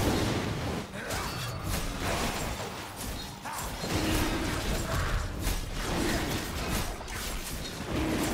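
Video game spell effects whoosh and clash during a fight.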